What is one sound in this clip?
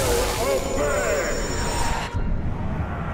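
A man cries out in a rough, strained voice.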